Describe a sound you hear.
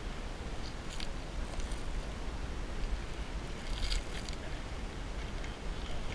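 Boots crunch on dry rocky ground.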